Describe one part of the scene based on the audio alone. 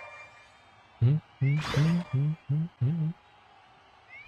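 Game sound effects chime and whoosh in quick bursts.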